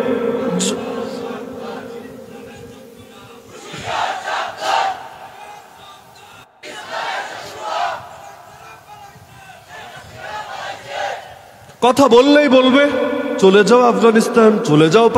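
A man preaches with emotion through a microphone.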